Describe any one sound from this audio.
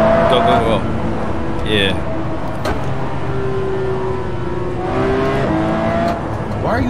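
A car engine roars and revs up and down through gear changes.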